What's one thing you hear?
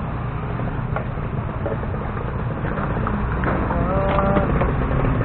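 A scooter engine rumbles close by.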